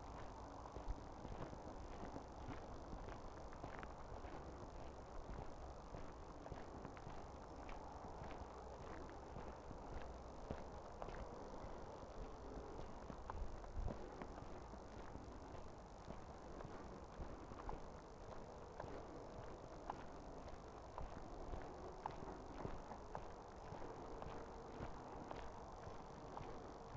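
A small drone's propellers whir steadily close by.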